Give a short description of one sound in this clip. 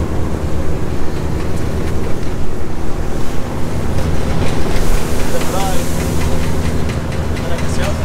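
Choppy water splashes against a boat's hull.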